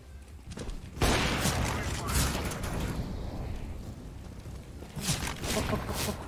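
Loud rifle shots crack and echo.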